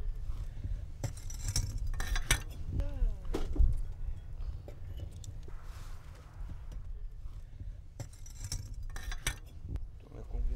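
Bricks knock and scrape against each other.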